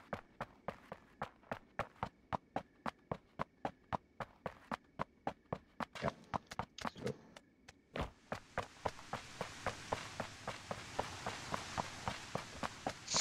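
Quick footsteps run steadily over hard ground.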